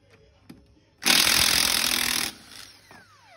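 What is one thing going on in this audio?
A cordless impact wrench rattles loudly as it spins a wheel nut.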